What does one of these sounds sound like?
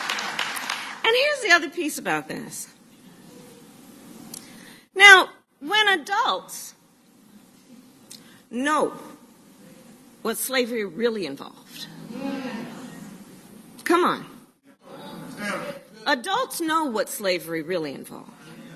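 A woman speaks with animation into a microphone, her voice carried over loudspeakers.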